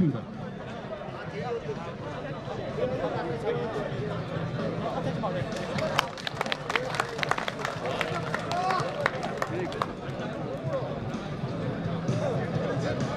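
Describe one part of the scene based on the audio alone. A crowd of people chatters in the background outdoors.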